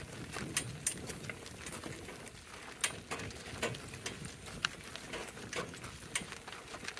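Cart wheels crunch and rumble over gravel.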